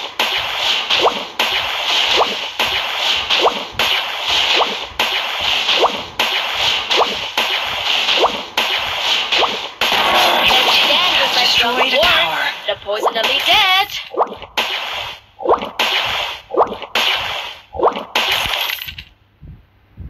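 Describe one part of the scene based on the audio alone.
Sharp game strike sounds repeat at a steady pace.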